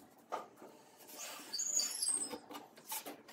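A pencil scratches along a cardboard template on wood.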